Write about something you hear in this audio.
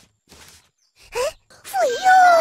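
A young boy exclaims excitedly.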